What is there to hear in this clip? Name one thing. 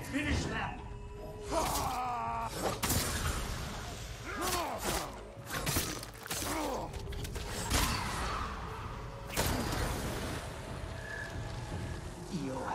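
Swords clash and slash sharply again and again.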